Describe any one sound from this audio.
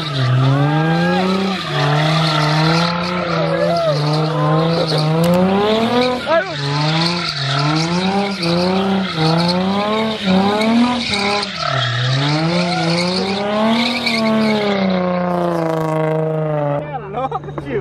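A car engine revs hard and rises and falls in pitch.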